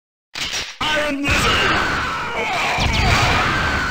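Video game explosions boom.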